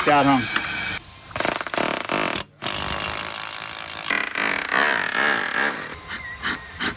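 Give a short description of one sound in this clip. A power drill runs steadily.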